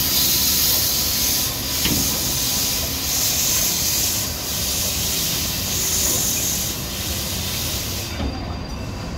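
Steam hisses loudly from a locomotive in rhythmic bursts.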